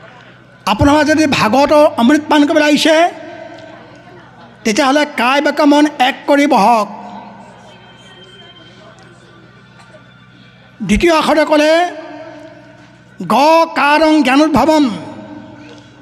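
An elderly man speaks with animation into a microphone, heard through a loudspeaker with some echo.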